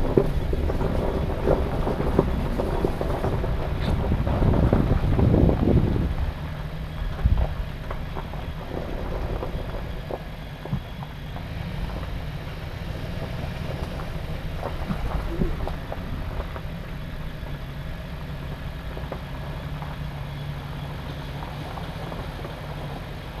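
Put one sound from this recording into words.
A vehicle engine rumbles steadily at low speed.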